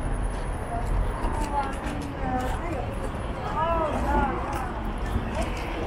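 People murmur and chatter in passing.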